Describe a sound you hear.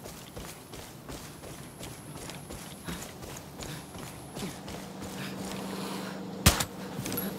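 Footsteps swish through grass at a steady walking pace.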